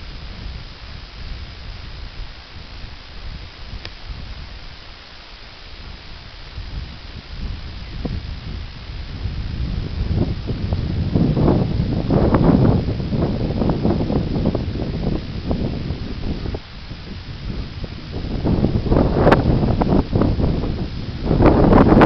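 Wind buffets outdoors, rising and falling in gusts.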